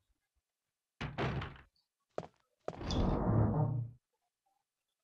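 A wooden door creaks open and thuds shut.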